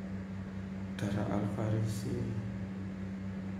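A young man speaks briefly and calmly, close to the microphone.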